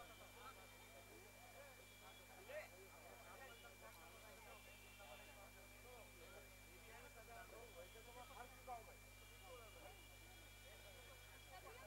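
A crowd of men chatter at once outdoors.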